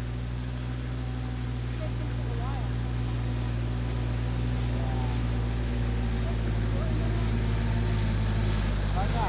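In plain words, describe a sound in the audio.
A boat engine drones steadily and grows louder as it approaches across the water.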